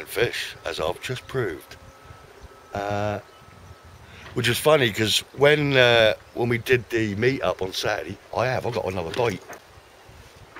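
A middle-aged man talks with animation close to the microphone.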